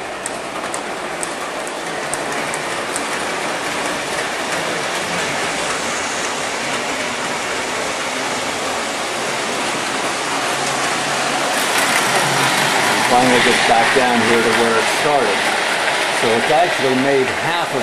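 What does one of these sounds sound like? A model train rumbles steadily along its track.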